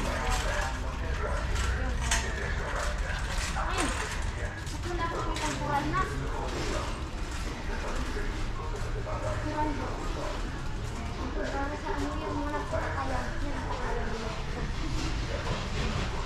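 A shopping cart rattles as it rolls over a hard floor.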